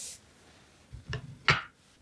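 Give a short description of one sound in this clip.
Scissors click as they are picked up.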